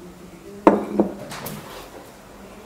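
Glass plates clink together as they are handled.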